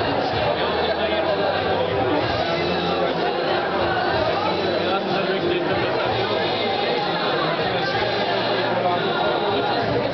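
A crowd of young people chatters loudly in a large echoing hall.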